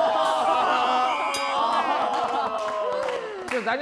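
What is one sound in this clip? People clap their hands and cheer.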